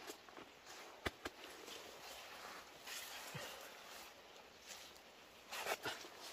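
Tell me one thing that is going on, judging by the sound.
A man digs in soil with a hoe, with dull thuds.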